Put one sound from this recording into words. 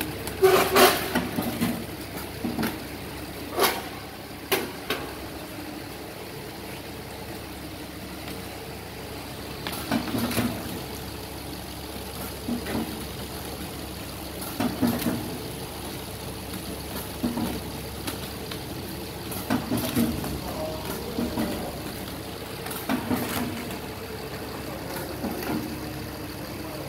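Machine parts clack and knock at intervals.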